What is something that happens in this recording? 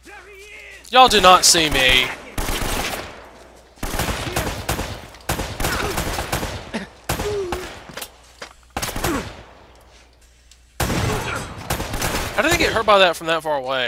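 Pistol shots ring out one after another, with a sharp echo.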